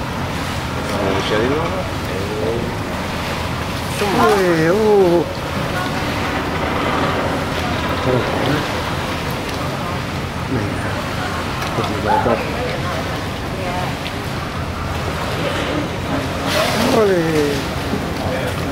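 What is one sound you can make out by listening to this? A beluga whale makes squeaky, gliding whistles.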